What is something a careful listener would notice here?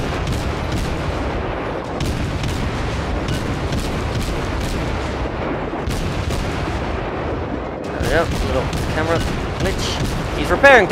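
Shells explode with deep rumbling blasts.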